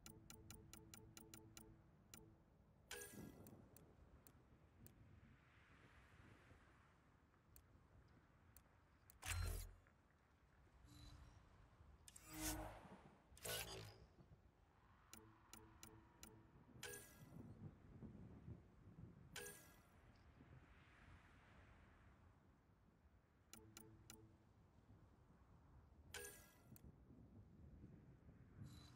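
Short electronic clicks and chimes sound as menu options are selected.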